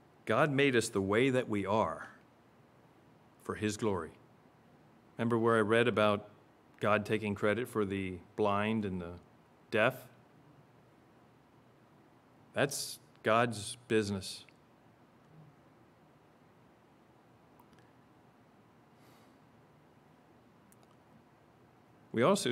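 A middle-aged man speaks calmly into a microphone, with pauses between phrases.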